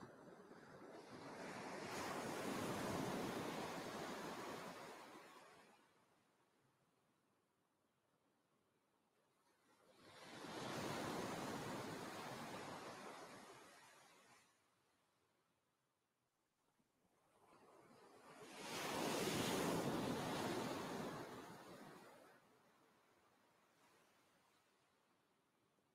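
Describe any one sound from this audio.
Ocean waves wash onto a shore in slow, rolling surges.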